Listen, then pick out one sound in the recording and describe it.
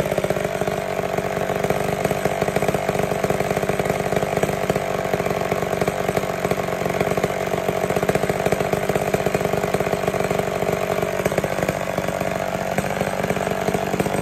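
A chainsaw engine idles with a fast, rattling putter, close by, its pitch dipping briefly and then rising again.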